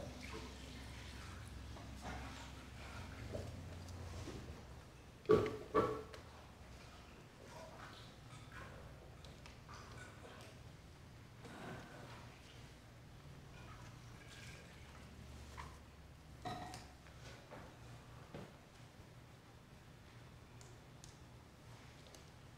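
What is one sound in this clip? Water splashes softly in a basin.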